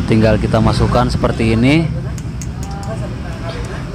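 Pliers grip a metal shaft.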